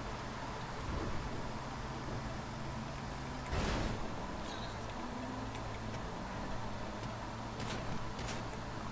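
A bus engine hums steadily as it drives along the road.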